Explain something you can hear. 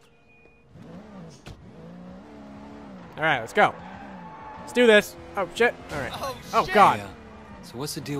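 A car engine revs and roars as a car speeds along.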